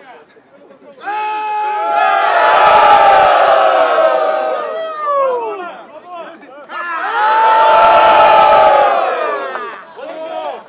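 A crowd of men cheers and shouts loudly outdoors.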